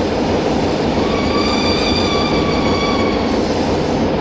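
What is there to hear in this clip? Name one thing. Train brakes squeal with a steady high whine.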